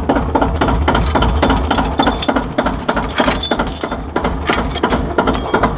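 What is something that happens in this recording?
Metal chains and a hitch bar clank and rattle.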